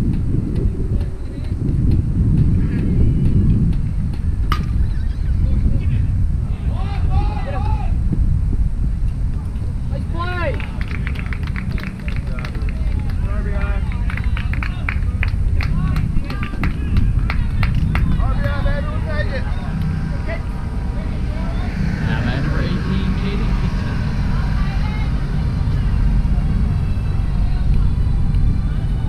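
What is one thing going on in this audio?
Wind buffets outdoors with a low rumble.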